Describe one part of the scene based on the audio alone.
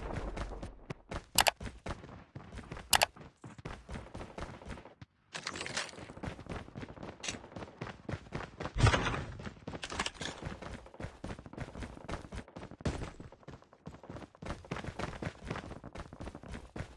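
Footsteps patter quickly on hard floors and stairs.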